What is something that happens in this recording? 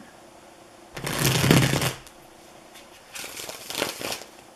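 Cards are shuffled with a soft rustle and flutter.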